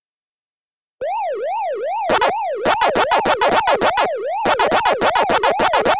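An electronic siren wails up and down in a steady, looping pattern.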